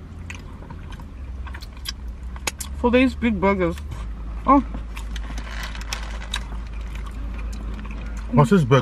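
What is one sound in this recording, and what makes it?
Food rustles and lips smack as people chew.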